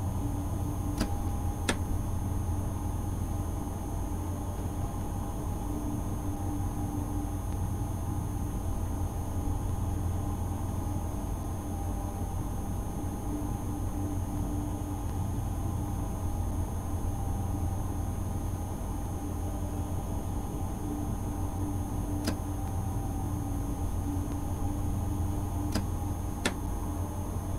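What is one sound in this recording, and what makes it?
Wheels click over rail joints now and then.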